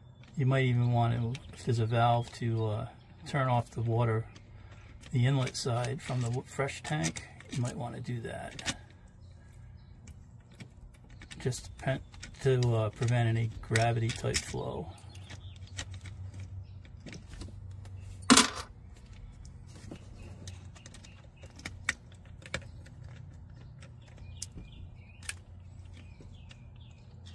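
Small plastic parts click and tap up close.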